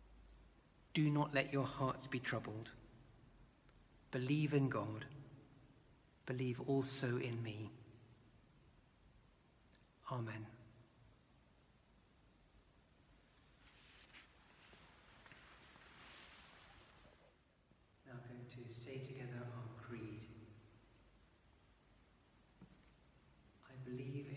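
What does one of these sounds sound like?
A middle-aged man speaks calmly in short phrases in an echoing room.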